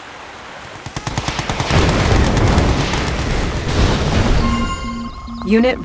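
Gunfire and explosions rumble in a large battle.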